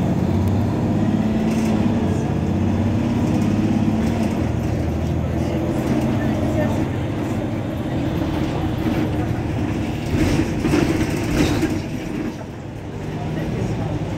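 A bus engine idles nearby with a low steady rumble.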